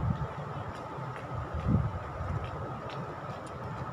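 A woman chews and slurps food close by.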